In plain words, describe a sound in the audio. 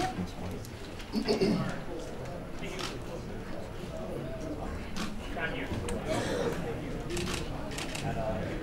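An elderly man announces over a loudspeaker.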